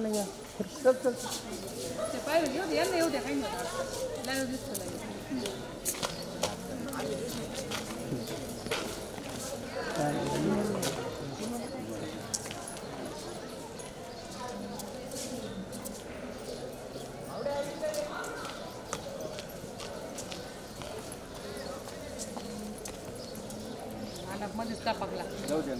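Footsteps scuff on paving as people walk past.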